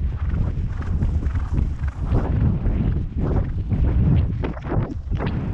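Horse hooves thud rhythmically on soft grass.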